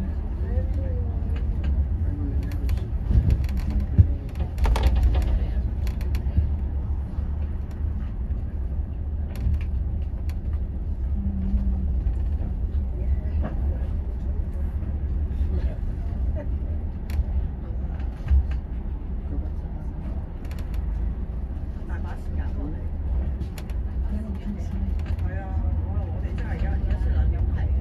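A bus engine rumbles steadily while driving in slow traffic.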